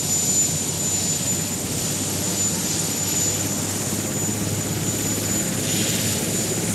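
A helicopter's engine whines steadily at a high pitch.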